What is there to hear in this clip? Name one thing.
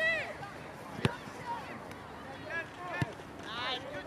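A soccer ball is kicked with a thud.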